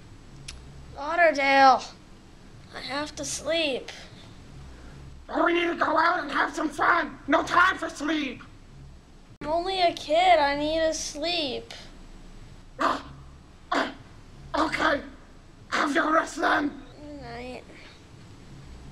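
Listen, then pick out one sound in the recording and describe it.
A boy talks sleepily and slowly, close by.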